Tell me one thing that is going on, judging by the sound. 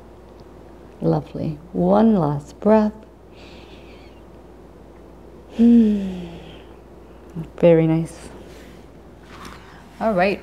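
A woman speaks calmly and slowly, in short phrases with pauses.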